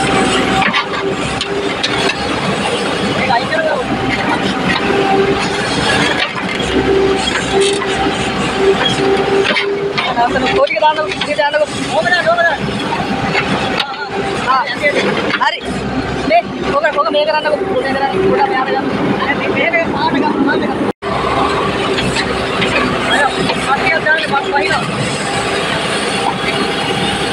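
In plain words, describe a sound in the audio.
An excavator engine hums steadily close by.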